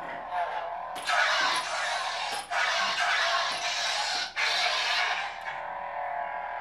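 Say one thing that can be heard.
A toy lightsaber whooshes as it swings.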